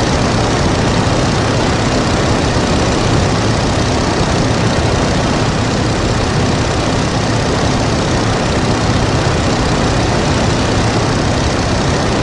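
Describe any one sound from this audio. A propeller engine drones loudly and steadily up close.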